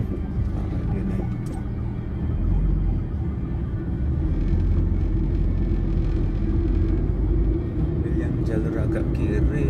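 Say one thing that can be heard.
Tyres roar on a road.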